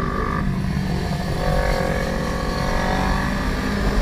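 Other motorcycle engines purr alongside nearby.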